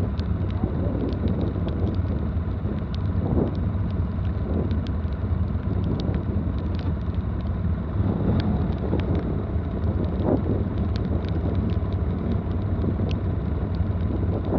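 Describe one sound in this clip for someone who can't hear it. A quad bike engine idles with a steady low rumble close by.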